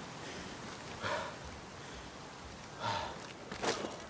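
A body lands with a dull thud after a jump.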